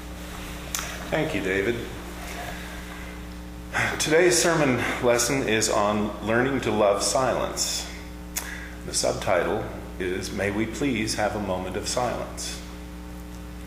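An older man speaks through a microphone to a room, calmly and at length.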